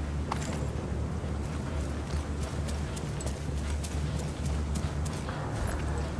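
Footsteps tread through grass and brush.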